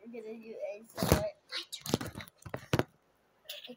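Fingers rub and tap on a microphone, making loud thumps.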